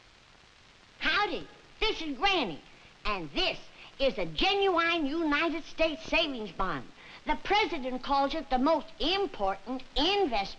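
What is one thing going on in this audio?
An elderly woman speaks calmly and clearly, close by.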